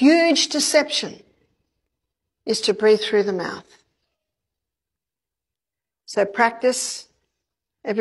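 A woman lectures in short phrases through a microphone, with pauses between them.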